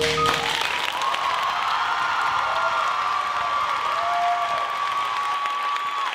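An audience cheers and screams with high, drawn-out whoops.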